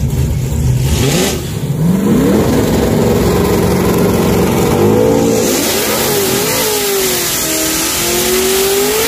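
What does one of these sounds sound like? An engine revs hard and roars as a car launches.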